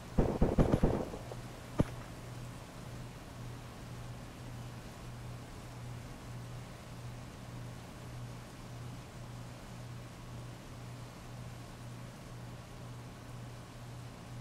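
Heavy rain pours down steadily onto a hard street.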